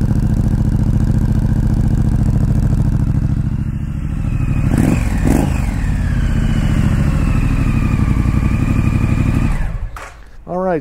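A motorcycle engine idles with a deep, steady rumble.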